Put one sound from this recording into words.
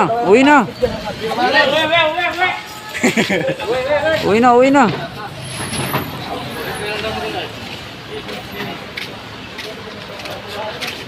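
Cardboard boxes thud as they are unloaded from a truck.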